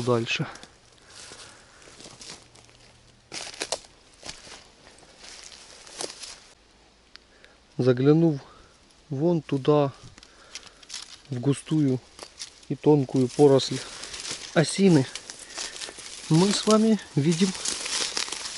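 Footsteps crunch through dry leaves and twigs.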